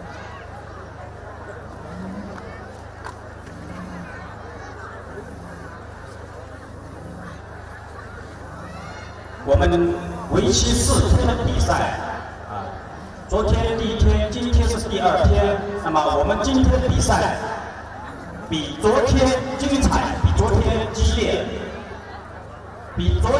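Two water buffalo bulls clash and grind their locked horns together.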